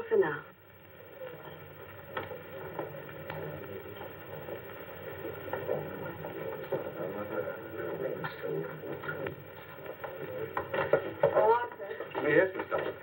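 A group of people murmur in the background.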